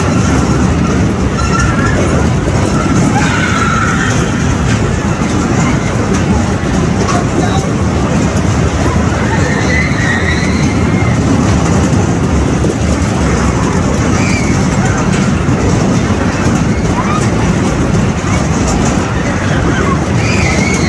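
A spinning fairground ride rumbles and rattles.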